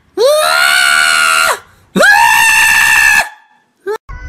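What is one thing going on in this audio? A cat yowls loudly twice.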